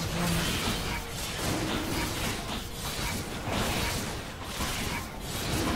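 Video game spell effects crackle and whoosh in rapid bursts.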